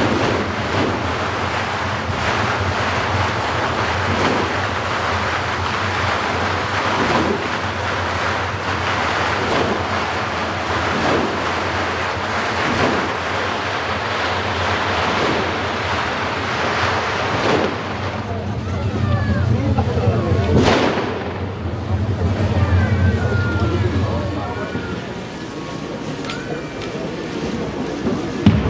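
A large crowd murmurs and talks loudly outdoors.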